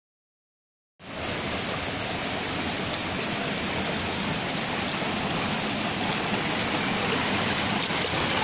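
Water rushes and splashes steadily over rocks.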